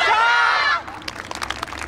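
A group of young dancers shouts loudly together outdoors.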